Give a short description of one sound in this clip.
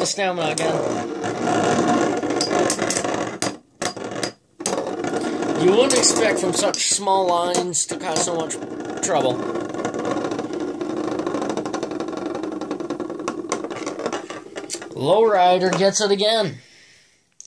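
Spinning tops whir steadily against a plastic dish.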